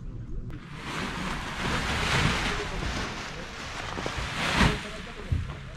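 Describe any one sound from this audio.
A paraglider wing flaps and rustles as it fills with air.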